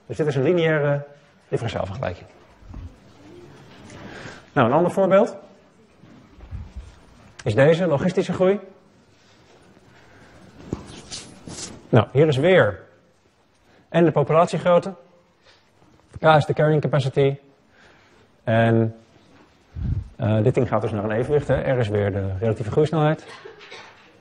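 A young man lectures calmly into a microphone, pausing between phrases.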